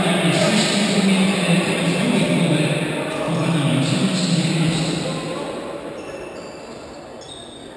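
A crowd of spectators murmurs and cheers in a large echoing hall.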